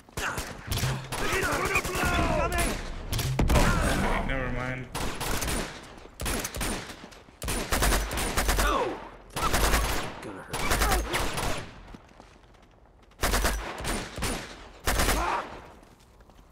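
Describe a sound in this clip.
Gunfire bursts out in loud rapid volleys.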